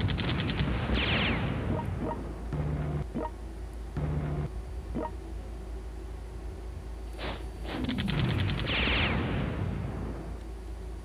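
Explosions and gunfire boom in a battle.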